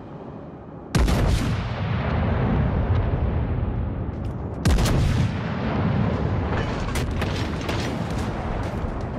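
Deep rumbling echoes roll on after the gunfire.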